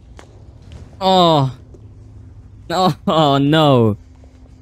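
A young man exclaims loudly into a microphone in drawn-out, rising and falling cries.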